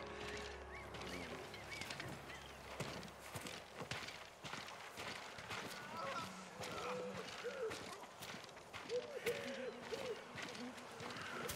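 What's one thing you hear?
Footsteps crunch on dirt.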